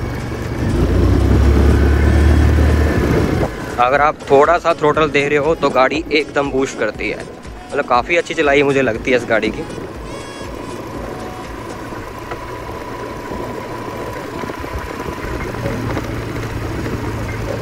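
A scooter engine hums steadily at low speed.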